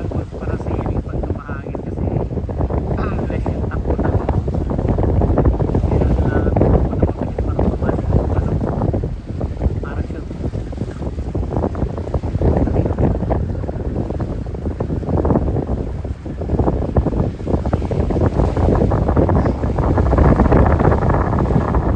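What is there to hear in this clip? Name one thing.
Small waves lap and splash nearby.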